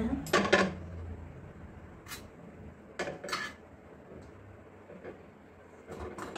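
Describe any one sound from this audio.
A fork scrapes and clinks against a steel pot.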